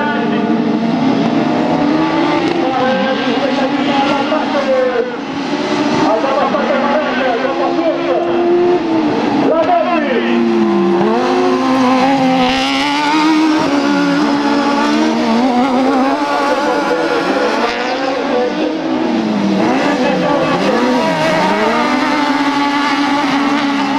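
Racing car engines roar and rev up and down.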